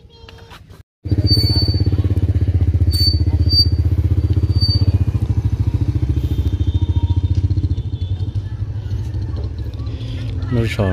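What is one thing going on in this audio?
A motorbike engine rumbles nearby as the motorbike rides off and fades.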